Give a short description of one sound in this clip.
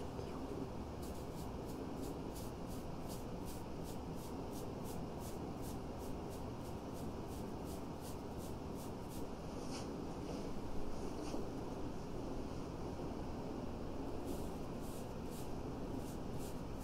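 A makeup brush sweeps softly and rhythmically across skin.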